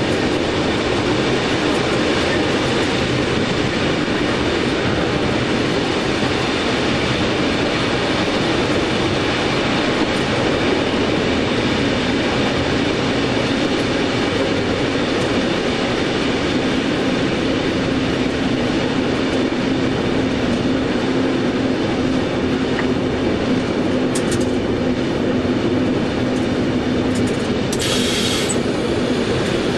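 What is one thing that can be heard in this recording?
A train rumbles steadily along the rails, heard from inside the cab.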